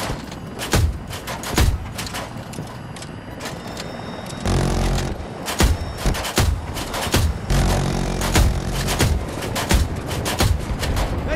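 Heavy cannon shots boom in rapid bursts.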